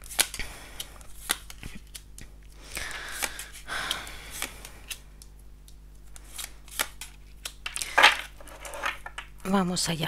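Cards slap and slide softly onto a table.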